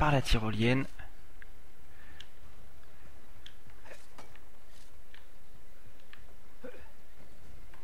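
A figure's hands grip and scrape on stone while climbing.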